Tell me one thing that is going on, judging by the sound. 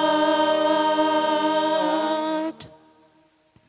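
Women sing a long held note together through microphones in an echoing hall.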